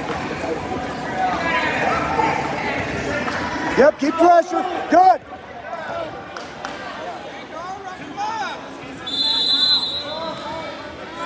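A crowd murmurs and chatters in a large echoing gym.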